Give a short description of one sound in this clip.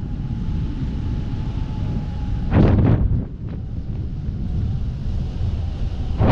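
Wind rushes steadily past, outdoors high in the air.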